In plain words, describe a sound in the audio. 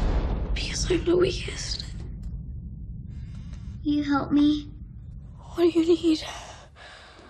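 A young girl whimpers and gasps in fear.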